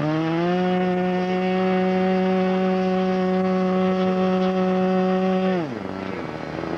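A small model airplane engine buzzes loudly at a steady high pitch, then abruptly winds down and stops.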